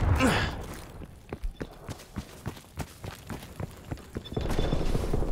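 Footsteps crunch quickly on dry rocky ground.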